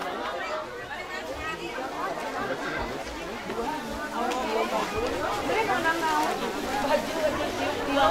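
A crowd of men and women chatters loudly outdoors.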